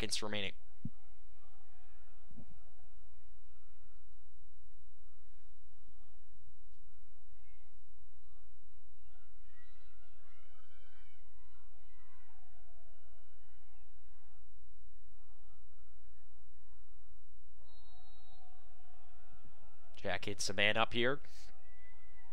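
A referee's whistle blows in sharp, trilling blasts.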